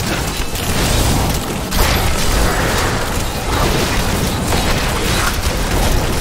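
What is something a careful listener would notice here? Game spells crackle and explode rapidly throughout.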